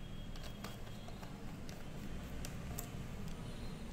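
A screwdriver clicks softly as it turns small screws.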